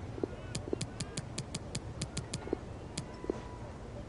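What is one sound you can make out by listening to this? Short electronic menu ticks click in quick succession.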